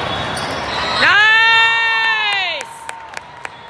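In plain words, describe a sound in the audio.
Young women cheer loudly.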